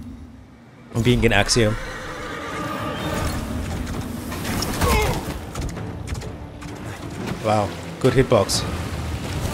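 A heavy weapon swings with a whoosh.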